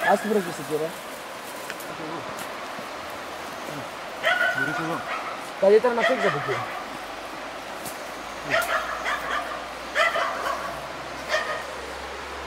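Dry leaves and twigs crunch as a man climbs down a slope.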